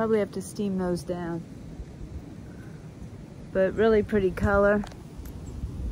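A middle-aged woman speaks with animation close to a microphone outdoors.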